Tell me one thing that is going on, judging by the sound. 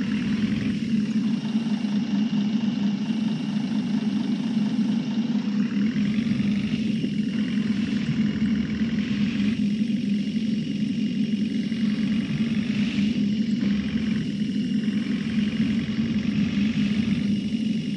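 A bus engine hums steadily and speeds up as the bus drives.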